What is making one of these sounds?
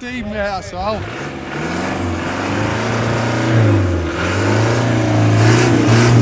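An engine revs hard and roars.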